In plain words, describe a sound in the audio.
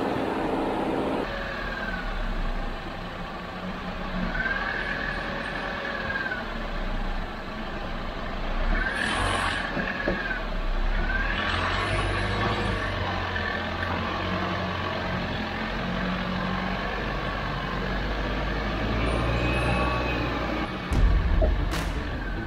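A vehicle engine rumbles and strains as it climbs over rough ground.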